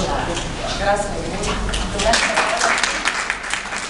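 A woman speaks to an audience in a large room.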